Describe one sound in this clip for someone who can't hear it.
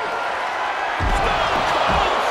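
A wrestler's body slams down with a heavy thud.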